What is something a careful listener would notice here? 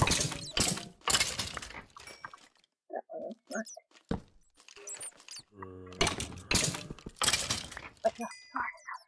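A sword strikes a rattling skeleton with sharp thuds.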